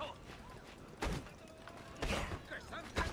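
Blows thud as a fight breaks out.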